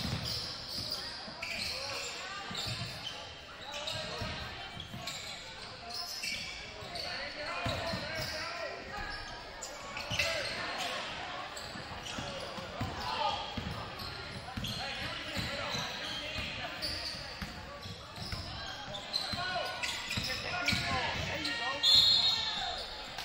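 A crowd murmurs and cheers from the stands.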